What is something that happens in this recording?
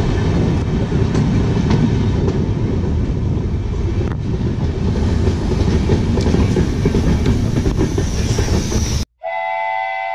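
A train rumbles and clatters loudly along the tracks close by.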